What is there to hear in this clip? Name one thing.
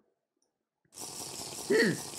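Gulping sounds of someone drinking.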